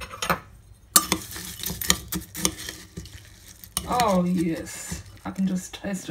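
A metal spoon scrapes and clinks in a bowl of cereal.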